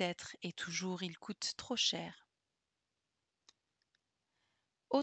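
A young woman speaks calmly and close into a headset microphone.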